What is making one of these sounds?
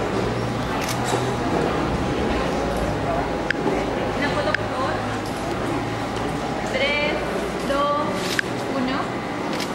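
A man speaks calmly through a microphone in an echoing hall.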